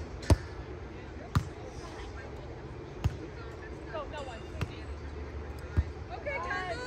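Hands bump a volleyball with sharp thuds outdoors.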